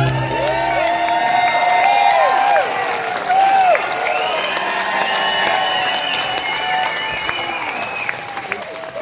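An audience whistles and cheers in a large hall.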